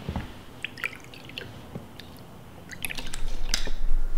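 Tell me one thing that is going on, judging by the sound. Liquid pours from a bottle into a small glass.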